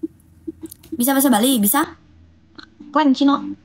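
A young woman speaks softly close to a microphone.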